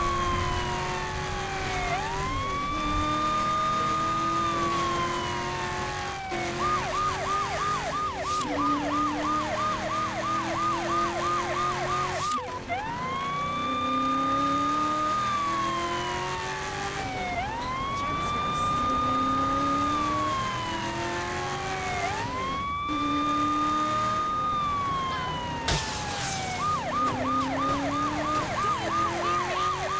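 A car engine roars as it speeds along.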